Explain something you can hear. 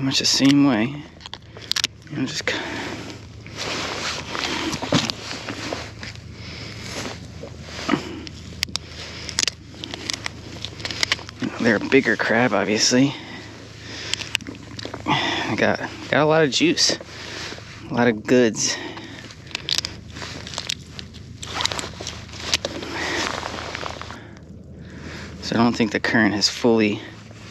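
A man talks calmly and close to the microphone.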